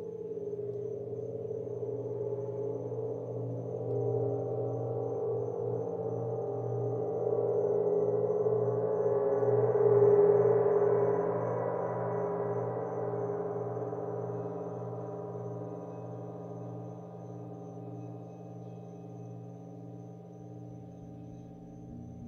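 Singing bowls ring with a steady, humming tone.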